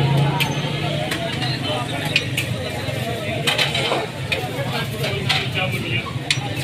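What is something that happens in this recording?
Patties sizzle on a hot griddle.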